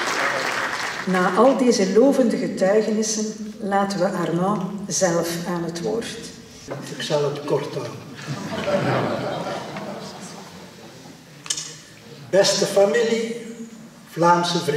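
An elderly man speaks calmly into a microphone, heard through a loudspeaker in an echoing hall.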